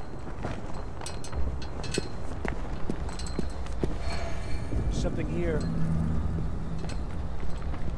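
Footsteps patter softly on pavement.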